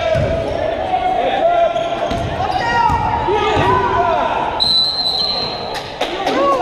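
A crowd murmurs and cheers.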